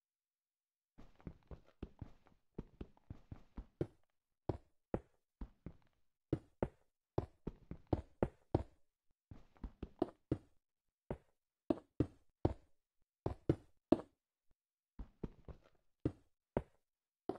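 Stone blocks are set down one after another with quick, dull thuds.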